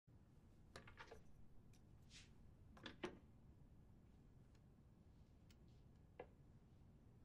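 Small wooden toys knock softly on wood as a hand sets them down.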